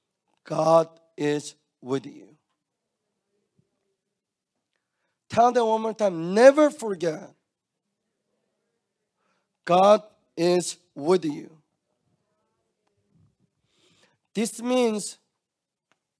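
A young man speaks with animation into a microphone, in short bursts with pauses.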